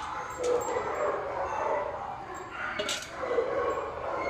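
A metal bowl clinks on a hard floor.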